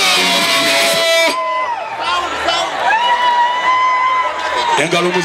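A young man sings loudly into a microphone over loudspeakers.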